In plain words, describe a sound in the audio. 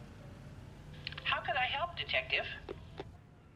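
A man speaks calmly into a telephone.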